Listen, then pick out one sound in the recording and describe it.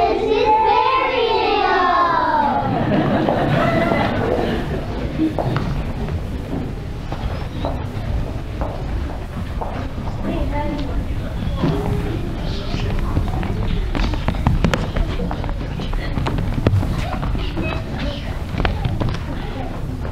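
An audience murmurs and chatters softly.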